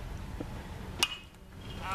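A bat cracks sharply against a baseball.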